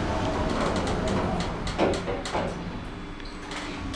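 Sliding elevator doors rumble shut.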